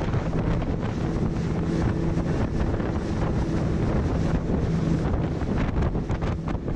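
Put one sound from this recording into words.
A boat's engine drones steadily.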